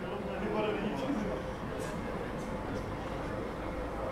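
Men chat quietly at a distance outdoors.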